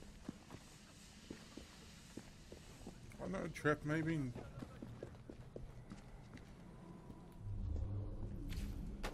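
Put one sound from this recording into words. Footsteps tap softly on stone.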